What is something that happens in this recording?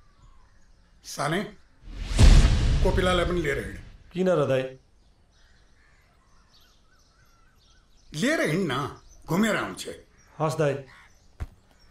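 A middle-aged man speaks calmly and closely.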